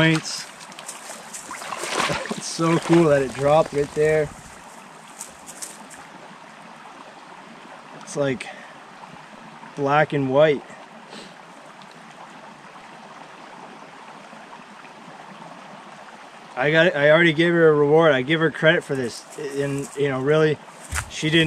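A young man talks calmly and close by, outdoors.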